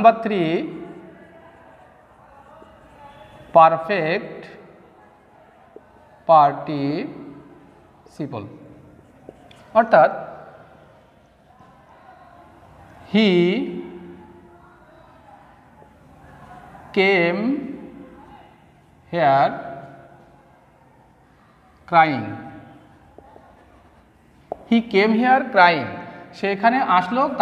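A young man speaks slowly, in short bursts with pauses.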